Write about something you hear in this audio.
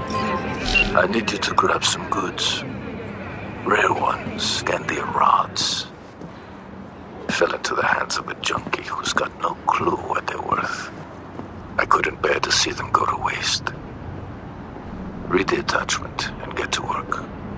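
A man speaks calmly over a phone call.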